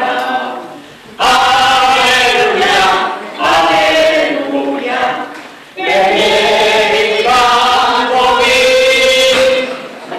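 A choir of elderly men and women sings together in phrases, heard in a room with some echo.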